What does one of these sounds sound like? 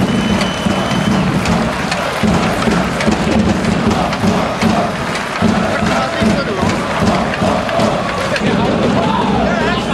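A crowd claps in time.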